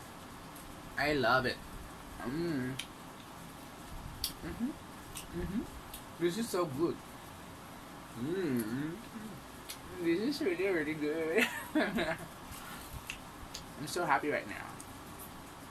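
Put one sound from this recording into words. A young woman speaks close by, calmly and playfully.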